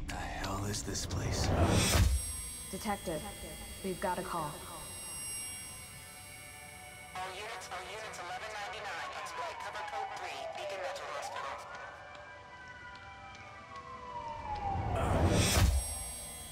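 A loud whoosh swells and cuts off.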